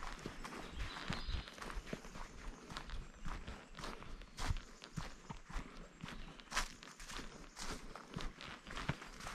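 Footsteps crunch steadily on a dirt trail.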